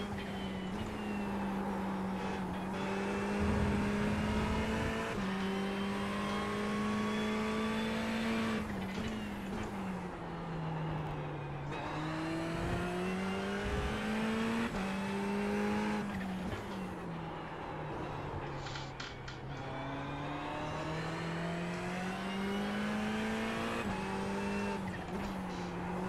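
A race car engine roars, climbing through the gears and dropping in pitch as it slows for corners.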